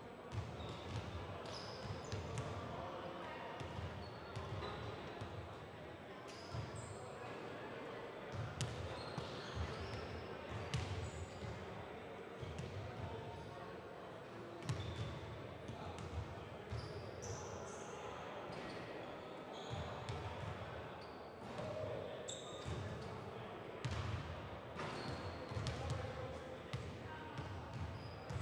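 Basketballs bounce on a hardwood court in a large echoing gym.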